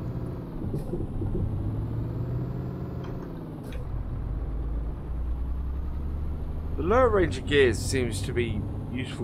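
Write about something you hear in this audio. A truck engine hums steadily as the truck drives slowly.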